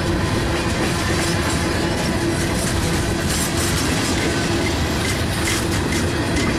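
A freight train rumbles steadily past up close.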